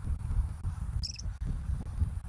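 A small bird gives a short, high call.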